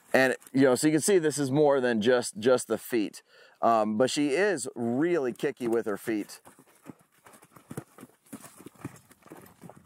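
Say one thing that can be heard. Hooves thud on soft sand.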